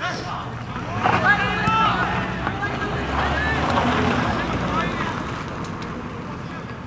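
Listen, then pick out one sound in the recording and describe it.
A crowd cheers and yells loudly outdoors.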